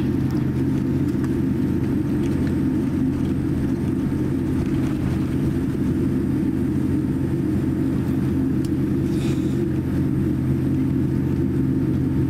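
Jet engines hum steadily inside an aircraft cabin as the plane taxis.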